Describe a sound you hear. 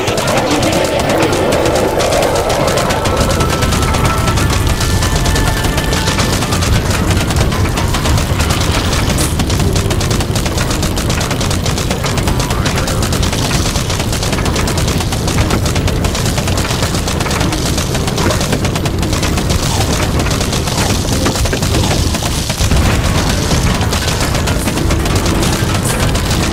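Game music plays.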